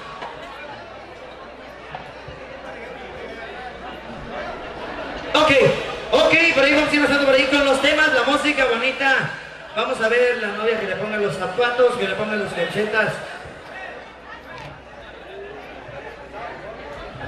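A large crowd murmurs and chatters in the background.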